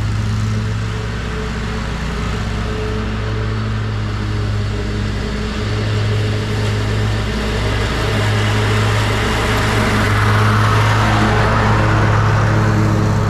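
Air from a leaf blower rushes over dry leaves.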